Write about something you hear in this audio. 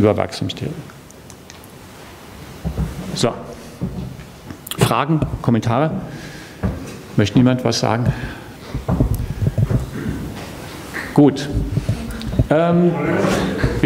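A man lectures calmly through a microphone in a large echoing hall.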